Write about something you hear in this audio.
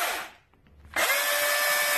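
A chainsaw cuts into wood.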